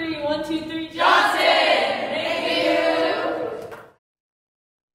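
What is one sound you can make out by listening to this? Young women cheer and shout together.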